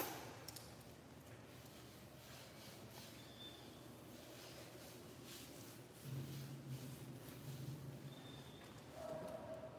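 Hands rub wet fur.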